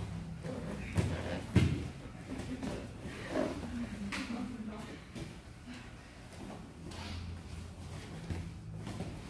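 Fabric of heavy uniforms rustles and scrapes.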